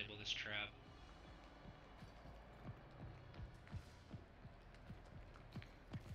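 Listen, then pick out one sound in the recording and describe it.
Footsteps tread softly on a hard floor.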